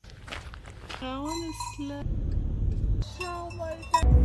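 Sheep bleat outdoors.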